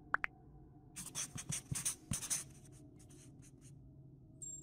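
A marker squeaks across a whiteboard in short strokes.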